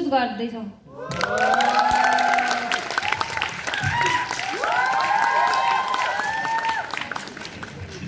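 A crowd cheers and whoops loudly in a large hall.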